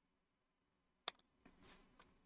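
A game piece clicks softly into place.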